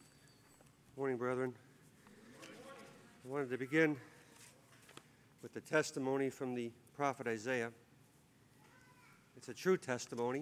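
An older man speaks calmly through a microphone, in bursts with pauses.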